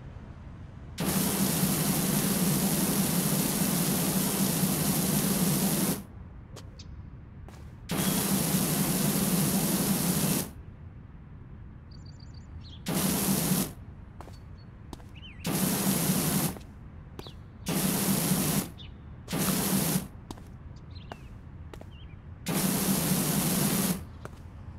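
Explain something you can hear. A pressure washer sprays water in loud hissing bursts that start and stop.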